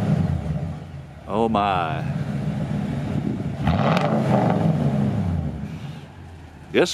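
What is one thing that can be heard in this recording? A truck engine rumbles deeply through its exhaust.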